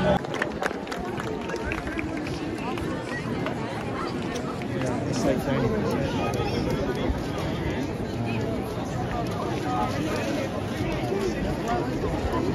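A large outdoor crowd of men and women chatters and murmurs all around, close by.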